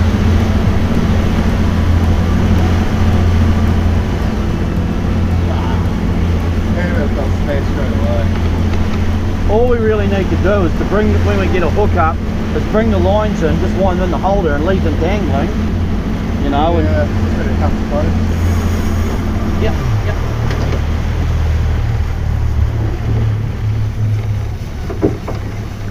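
Water rushes and churns behind a moving boat.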